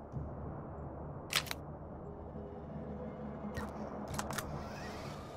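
Short interface clicks sound.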